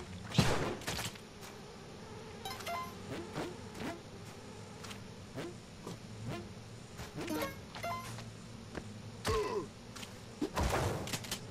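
Short electronic game sound effects blip and thud again and again as a character jumps and attacks.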